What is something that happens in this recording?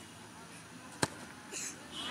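A football is kicked hard with a thump.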